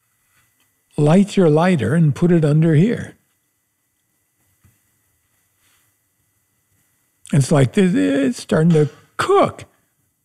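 An older man speaks calmly and closely into a microphone, pausing between phrases.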